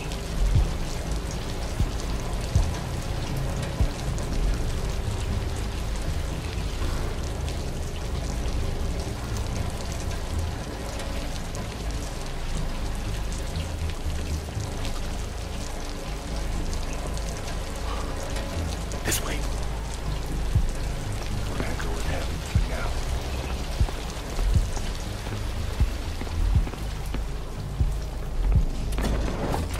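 Heavy gunfire and explosions boom and rumble steadily.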